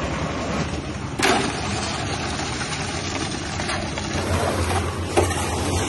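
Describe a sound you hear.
Wet concrete slides and pours out into a metal wheelbarrow.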